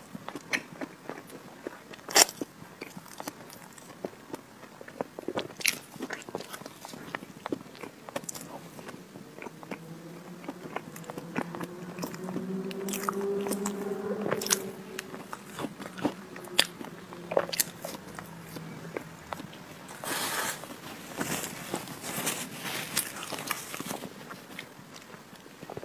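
A young woman chews cake with wet smacking sounds close to a microphone.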